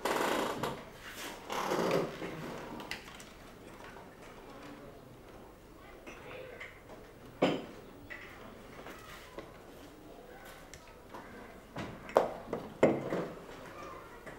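A younger man speaks briefly, close by.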